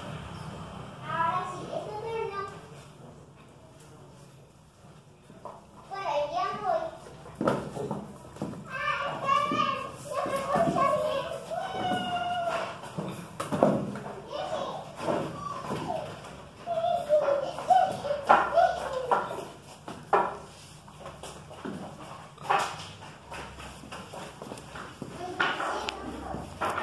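Two dogs growl playfully while wrestling.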